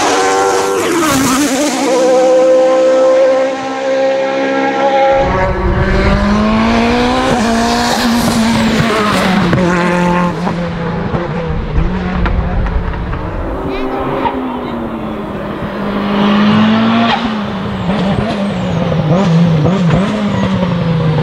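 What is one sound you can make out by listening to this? A racing car engine roars loudly, revving up and down through gear changes.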